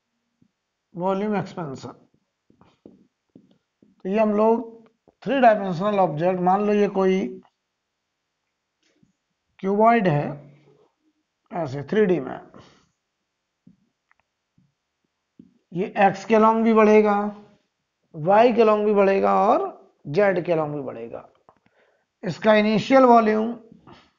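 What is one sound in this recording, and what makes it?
A man speaks calmly in short phrases, as if explaining a lesson.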